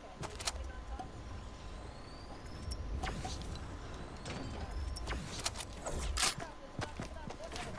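A pickaxe swings and strikes in quick thuds.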